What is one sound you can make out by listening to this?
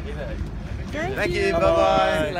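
A middle-aged man talks loudly and cheerfully close by.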